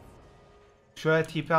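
A man speaks loudly and with animation close to a microphone.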